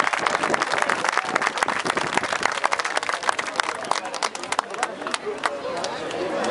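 A crowd claps loudly outdoors.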